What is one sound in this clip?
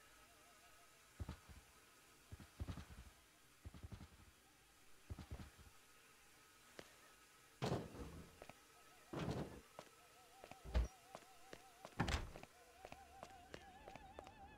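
Footsteps tap across a hard tiled floor.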